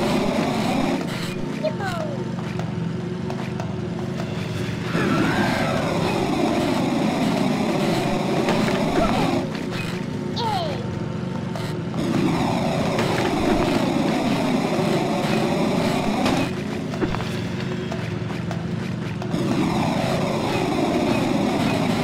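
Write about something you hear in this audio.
A small motor hums steadily as a toy-like vehicle drives along.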